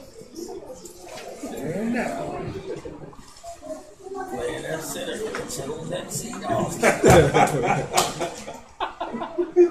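Several young men laugh.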